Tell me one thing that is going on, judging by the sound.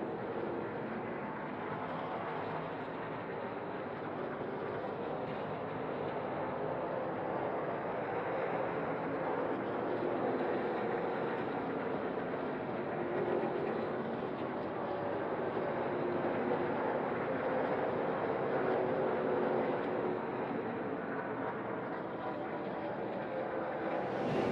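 Racing truck engines roar and whine as they speed past.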